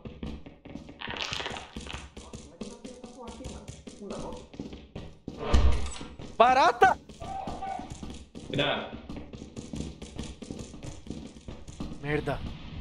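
Footsteps tread quickly on a hard floor.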